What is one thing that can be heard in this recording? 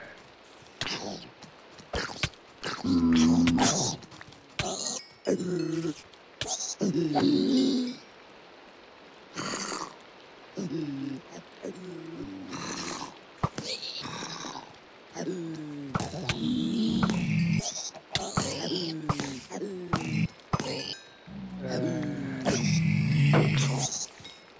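A sword thuds repeatedly against zombies.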